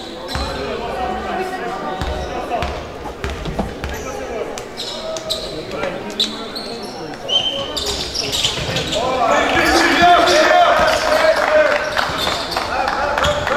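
A crowd of spectators chatters and cheers from the sidelines.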